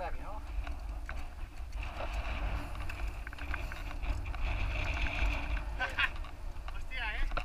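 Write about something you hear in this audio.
Bicycle tyres roll and rattle over a rough road.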